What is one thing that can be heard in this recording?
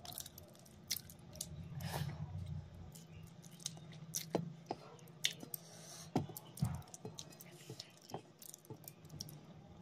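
A young woman chews and smacks her lips close to a microphone.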